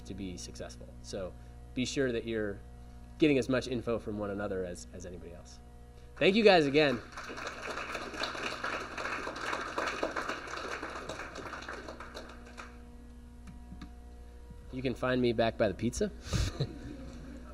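A young man speaks calmly into a microphone over loudspeakers in a large room.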